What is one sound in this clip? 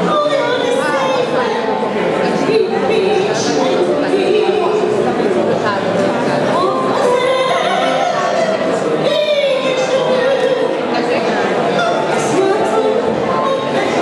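A piano plays an accompaniment.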